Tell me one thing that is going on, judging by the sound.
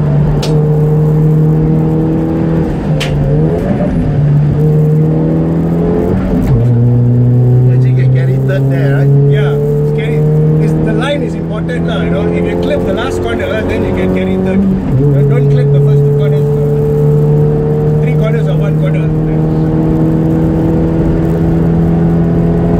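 A four-cylinder racing car engine drones under throttle, heard from inside the cabin.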